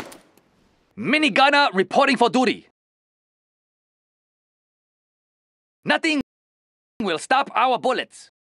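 A man speaks in a deep, heavy voice with gruff animation.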